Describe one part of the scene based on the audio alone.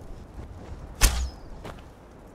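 An arrow is loosed with a sharp twang.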